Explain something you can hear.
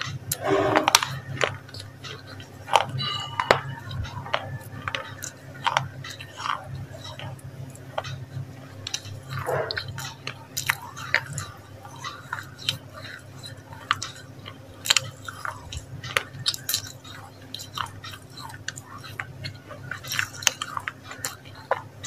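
Wet mouth clicks and lip smacks sound very close to a microphone.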